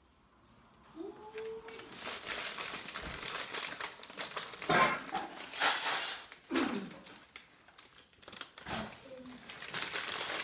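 Dishes clatter on a counter.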